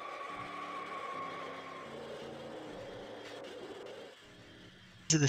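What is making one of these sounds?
Race car engines drone steadily.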